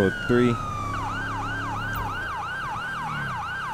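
A police siren yelps in fast repeating cycles.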